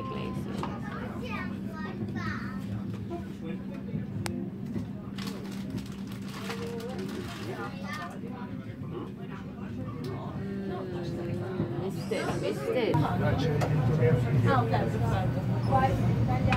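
A cable car hums steadily as it glides along.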